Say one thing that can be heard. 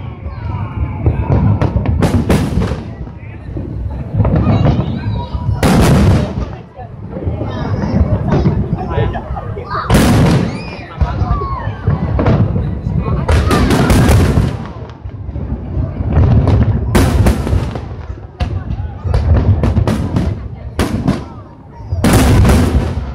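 A crowd of people chatters and cheers nearby.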